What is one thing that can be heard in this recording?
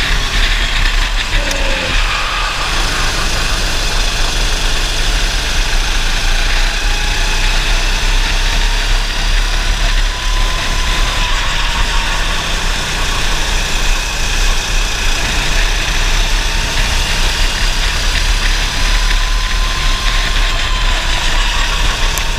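Wind rushes past an open kart at speed.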